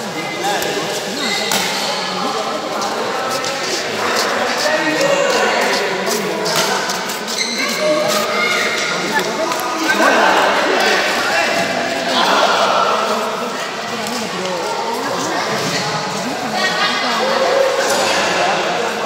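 Children and adults chatter in a large echoing hall.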